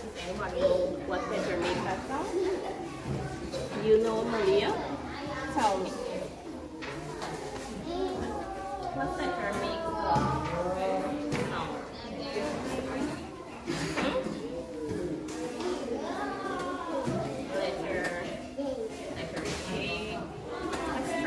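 Young children sing along together.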